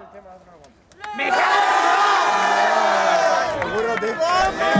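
A crowd of young men cheers and shouts.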